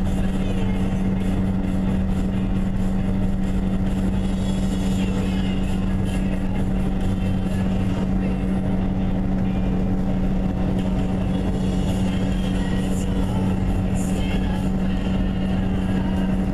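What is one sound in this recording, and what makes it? Tyres roar on the road at highway speed, heard from inside a moving car.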